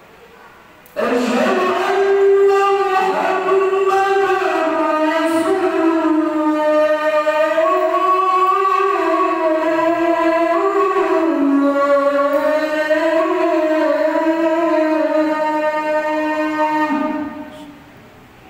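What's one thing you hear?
A man chants in a long, sustained voice through a microphone and loudspeakers, echoing in a large hall.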